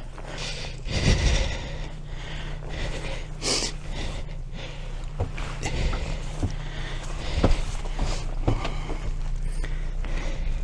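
Boots thump on a metal boat's hull.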